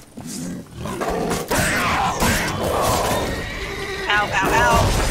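Blades swing and strike in a fight.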